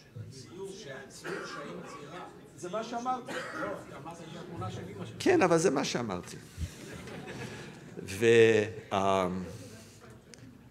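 A middle-aged man speaks with animation into a microphone in a large room.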